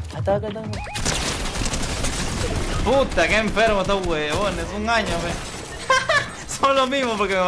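Gunshots crack rapidly in a video game.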